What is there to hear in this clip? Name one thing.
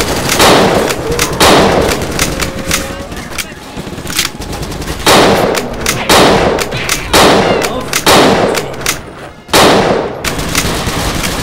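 Gunshots fire loudly in single heavy blasts, each echoing away.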